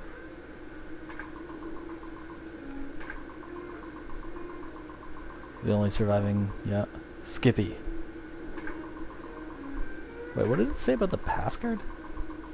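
A computer terminal ticks and beeps softly as text prints out.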